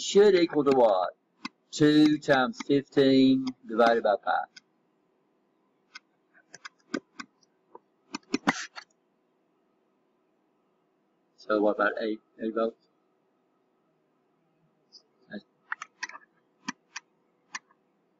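A pen taps and scratches lightly on a writing tablet.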